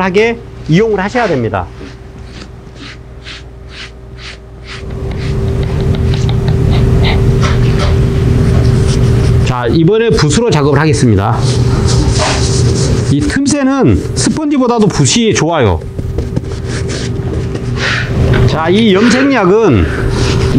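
A brush scrubs against leather in short strokes.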